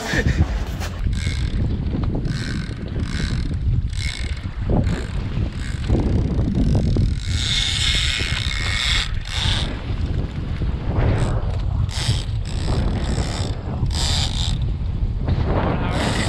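Waves splash against a moving boat.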